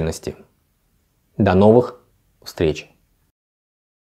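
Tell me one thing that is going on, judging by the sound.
A man speaks calmly and closely into a clip-on microphone.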